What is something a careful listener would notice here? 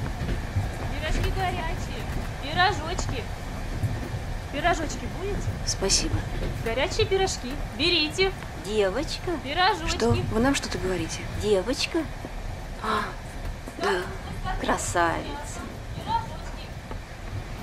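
An elderly woman talks cheerfully close by.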